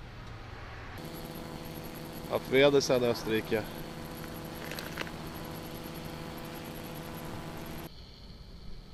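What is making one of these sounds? A motorcycle engine idles nearby with a steady hum.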